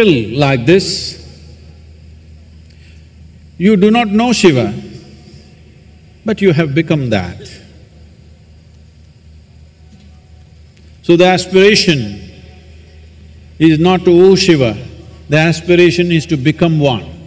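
An elderly man speaks slowly and expressively through a microphone, with long pauses between phrases.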